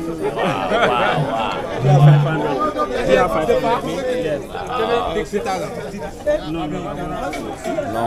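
A crowd of men and women talks and calls out loudly nearby.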